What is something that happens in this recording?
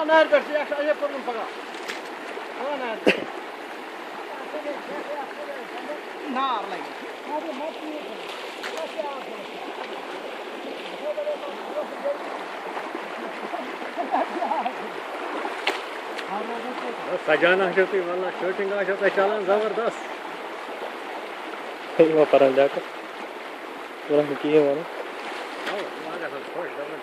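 Shovels scrape and splash in water.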